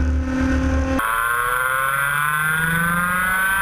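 Several kart engines whine and rev nearby.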